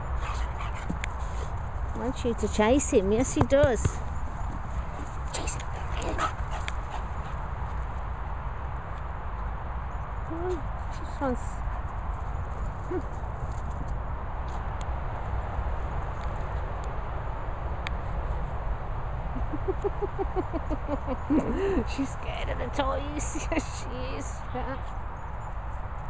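Dogs run across soft grass.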